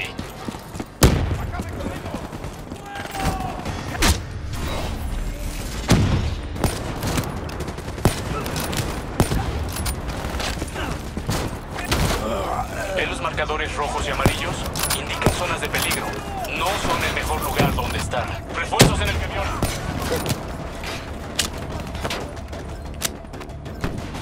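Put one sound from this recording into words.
Gunshots crack out in sharp, scattered bursts.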